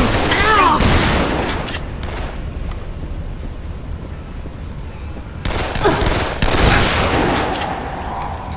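Gunshots blast loudly.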